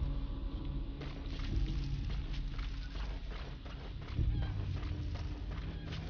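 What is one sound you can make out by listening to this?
Footsteps crunch quickly through dry grass.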